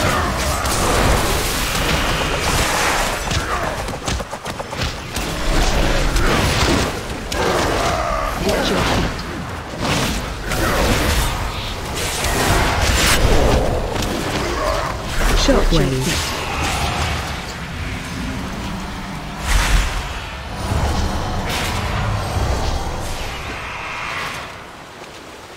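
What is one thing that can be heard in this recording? Spell effects whoosh and crackle in a game fight.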